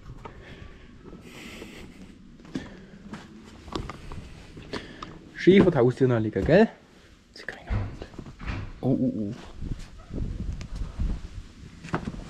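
Footsteps tread on stone steps and paving.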